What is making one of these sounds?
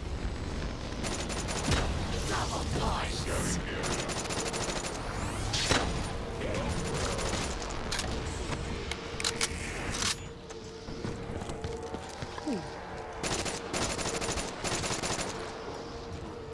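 A gun fires in rapid, rattling bursts.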